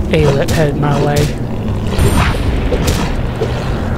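A creature growls and snarls close by.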